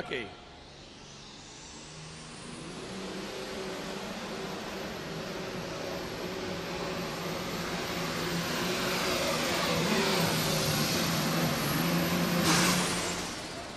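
A tractor engine roars loudly, building in intensity, then cuts off.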